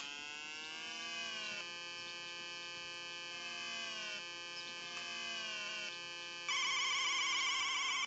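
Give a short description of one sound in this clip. A retro video game car engine hums steadily in electronic tones.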